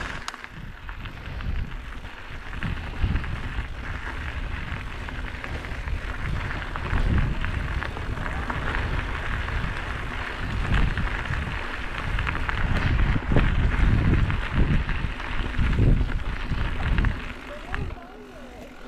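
Bicycle tyres rumble and crunch over a gravel trail.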